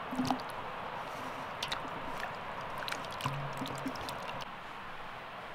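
Water splashes as hands wash tomatoes in a bowl.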